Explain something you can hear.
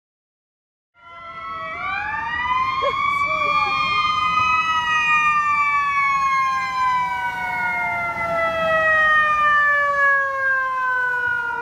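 A fire engine siren wails nearby, rising and then slowly falling in pitch.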